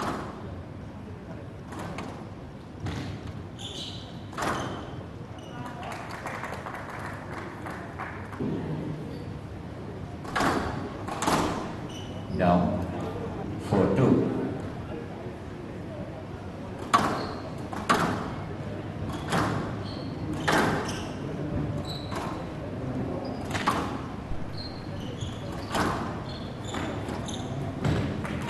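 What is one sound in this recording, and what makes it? A squash ball smacks sharply against the walls again and again.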